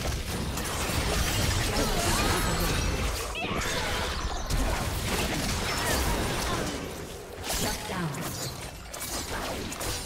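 Weapons clash and hit repeatedly in a game fight.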